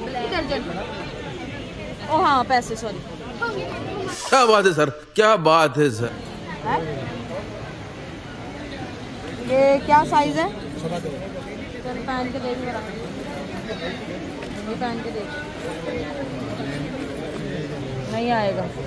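A busy crowd murmurs in the background.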